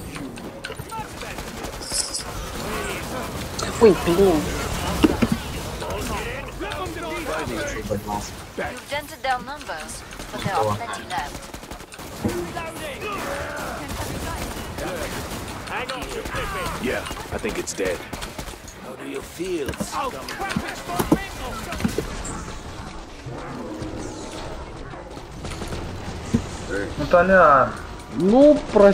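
Monsters screech and growl.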